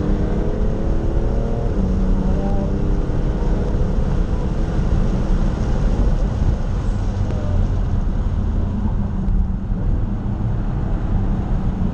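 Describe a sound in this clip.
A car engine roars loudly from inside the cabin, its pitch shifting as it accelerates and slows.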